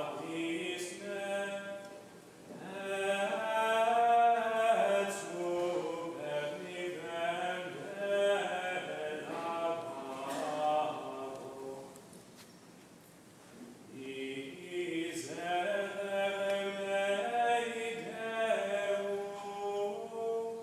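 A congregation of men and women sings a slow hymn together in a large, echoing hall.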